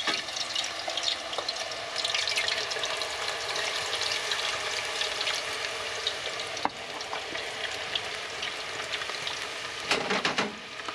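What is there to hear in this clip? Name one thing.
Potatoes sizzle and bubble in hot oil.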